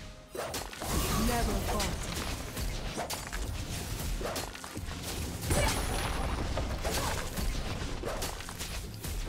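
Blows thud and clang as game fighters clash.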